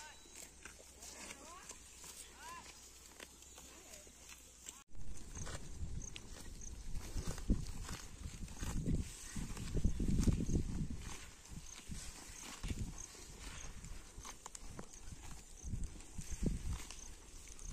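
Cattle tear and chew grass close by.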